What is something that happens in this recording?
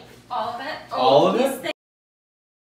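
Young children chatter at a table.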